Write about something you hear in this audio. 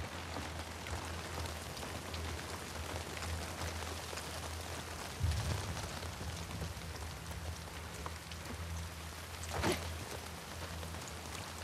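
Footsteps thud on wooden boards and wet ground.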